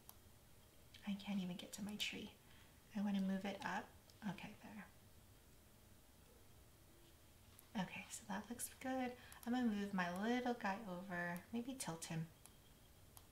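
A woman speaks calmly into a microphone, close by.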